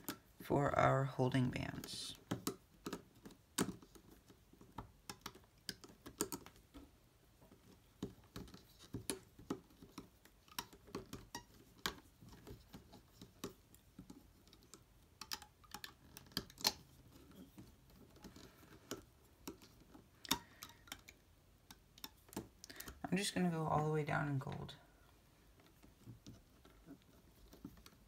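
Rubber bands snap and click against a plastic loom.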